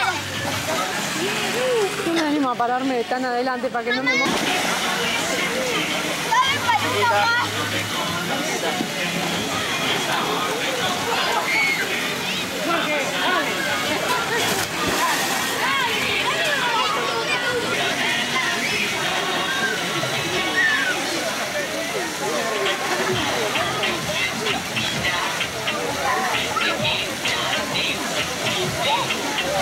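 Children and adults shout and chatter nearby outdoors.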